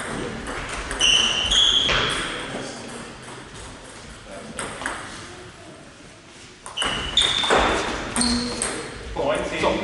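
Shoes squeak sharply on a hall floor.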